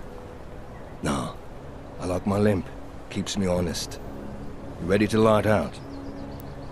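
A second man answers calmly in a deep voice.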